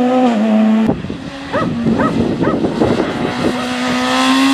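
Gravel sprays and pelts the ground as a car slides through a bend.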